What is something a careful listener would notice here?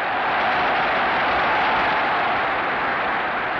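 A large crowd cheers and roars loudly outdoors.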